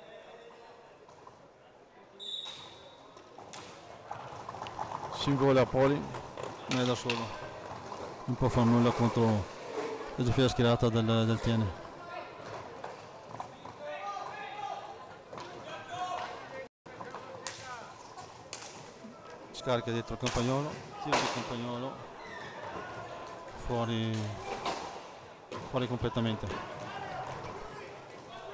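Roller skates rumble and scrape across a hard floor.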